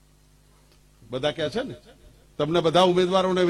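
A middle-aged man speaks loudly and forcefully into a microphone, heard through loudspeakers.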